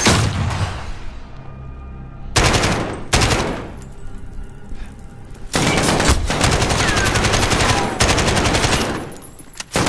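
A rifle fires rapid bursts of gunshots indoors.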